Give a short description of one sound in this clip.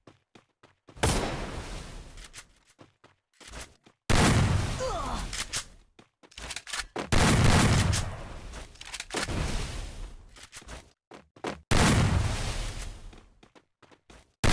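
An ice wall bursts up with a loud crackling whoosh, again and again.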